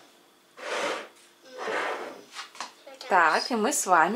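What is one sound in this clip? A bowl scrapes as it slides across a wooden table.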